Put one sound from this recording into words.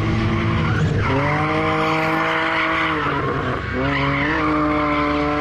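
A motorcycle engine revs up sharply.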